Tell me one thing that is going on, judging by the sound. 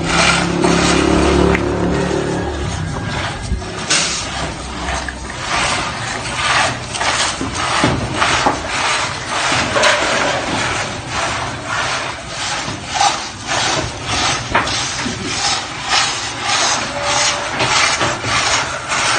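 A wooden rake scrapes and rustles through drying grain in repeated strokes.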